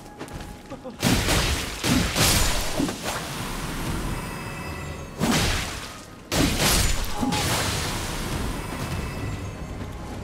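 Swords clash and slash in a noisy fight.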